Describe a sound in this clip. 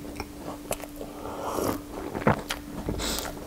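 A man slurps a drink from a mug.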